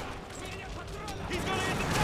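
Gunshots crack nearby.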